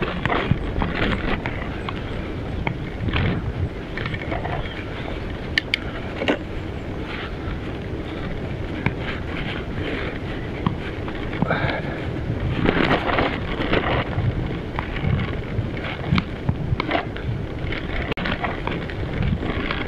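Bicycle tyres roll and crunch over a rough, potholed track.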